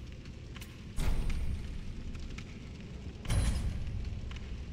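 Menu clicks sound.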